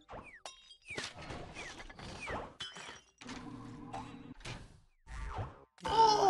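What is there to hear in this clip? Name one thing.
Cartoon whooshes and swishes of a fight play in quick bursts.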